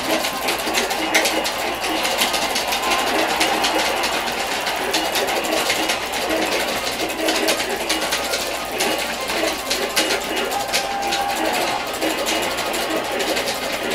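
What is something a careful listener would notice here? Loud rock music with electric guitar and drums plays through a television's speakers.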